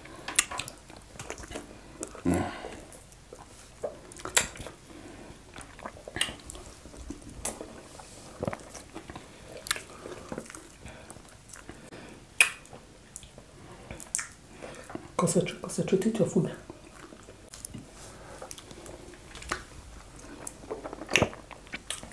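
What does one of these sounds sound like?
Fingers squish into soft dough and sauce.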